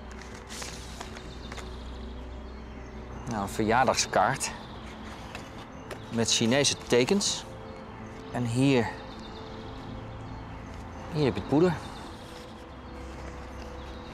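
Paper rustles as a man handles a card and envelope.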